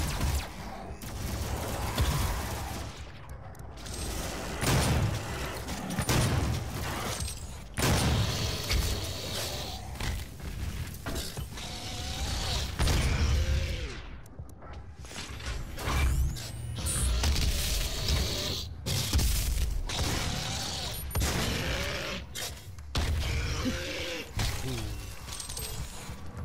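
Heavy guns fire in loud, repeated blasts.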